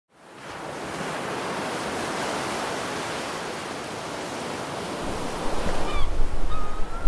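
Waves crash and foam against rocks.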